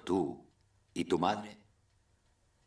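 A man speaks warmly up close.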